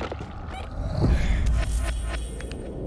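A weapon swings through the air with a whoosh.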